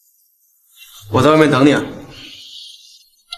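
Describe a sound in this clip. A young man speaks warmly up close.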